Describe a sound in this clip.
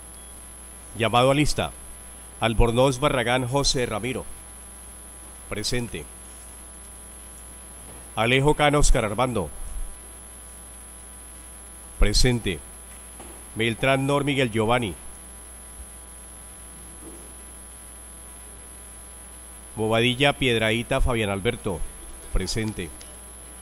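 A man speaks in short phrases through a microphone.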